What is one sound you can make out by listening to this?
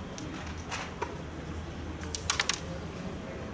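A striker flicks across a wooden board and clacks sharply against game pieces.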